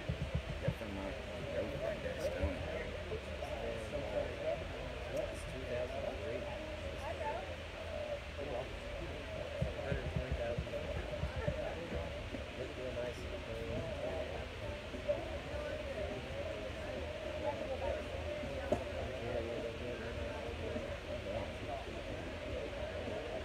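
A crowd of adults chatters at a distance outdoors.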